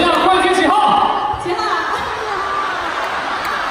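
Performers sing loudly through loudspeakers in a large hall.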